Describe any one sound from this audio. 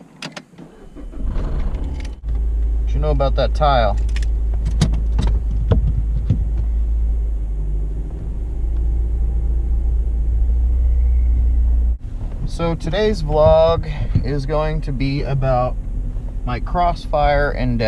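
A car engine starts and idles with a steady low hum.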